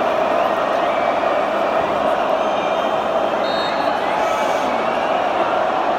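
A large stadium crowd roars and chants steadily in the open air.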